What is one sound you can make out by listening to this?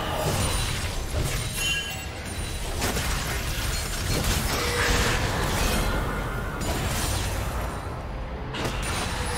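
Fantasy battle effects whoosh and crackle as spells are cast.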